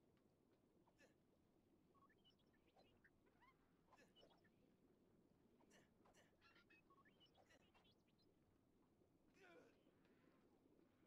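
Light plastic clicks and clatters sound as a small toy figure climbs and jumps.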